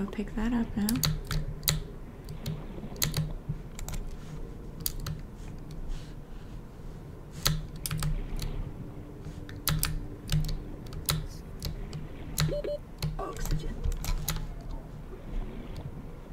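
Keyboard keys click in quick, uneven bursts.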